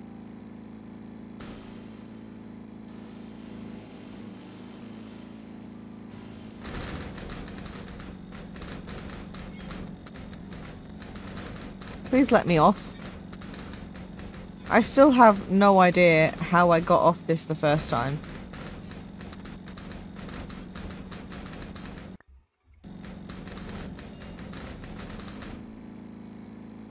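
A lawn mower engine hums steadily.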